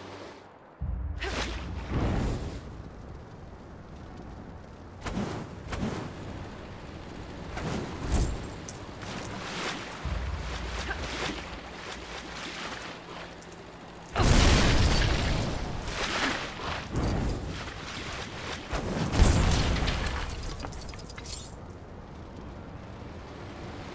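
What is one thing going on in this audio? Explosions boom and crackle again and again.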